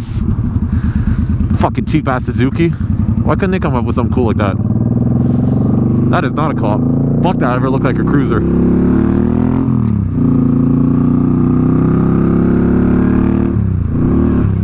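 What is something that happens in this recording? A motorcycle engine rumbles steadily, revving up and dropping as it shifts gears.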